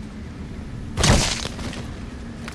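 A rifle shot cracks once, with a short echo.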